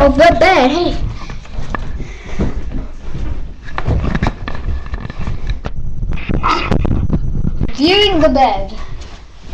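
A hand bumps and rubs against a microphone.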